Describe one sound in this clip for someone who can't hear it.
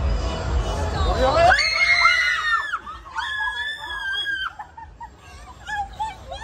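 Young women laugh and chatter with excitement.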